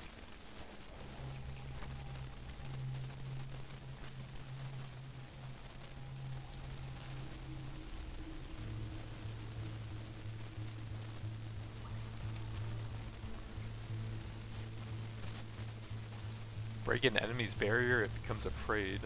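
Low, steady game music hums.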